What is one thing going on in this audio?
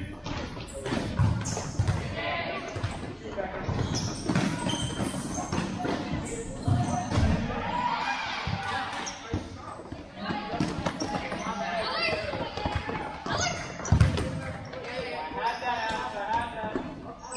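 Young players call out to each other across an echoing hall.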